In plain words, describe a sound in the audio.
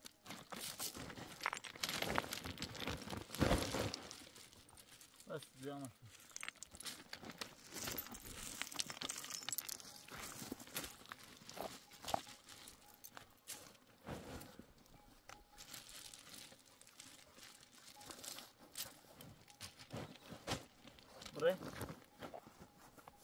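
Plants rustle and snap as they are pulled from stony ground.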